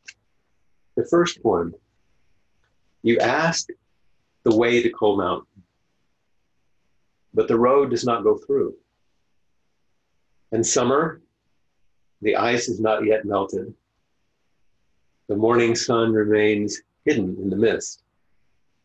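An older man speaks calmly in short phrases with pauses, heard through an online call.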